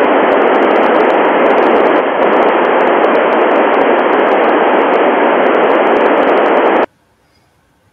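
A radio receiver hisses with loud, steady static that cuts off abruptly.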